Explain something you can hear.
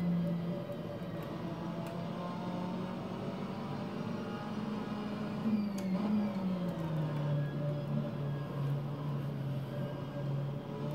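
A racing car engine drones steadily from loudspeakers, its pitch rising and falling with the gears.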